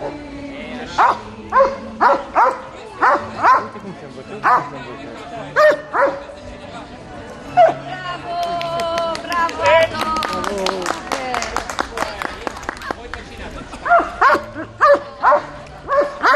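A man calls out commands to a dog.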